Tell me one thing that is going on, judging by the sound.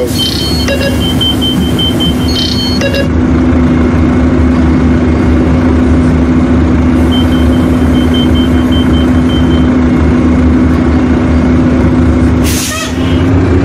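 A bus engine idles with a steady hum.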